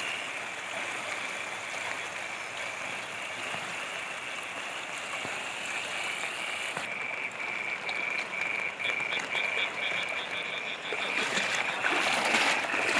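Muddy floodwater rushes and swirls steadily outdoors.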